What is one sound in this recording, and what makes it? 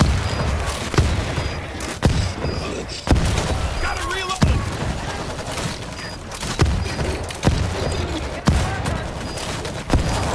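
A rifle fires single loud shots at a steady pace.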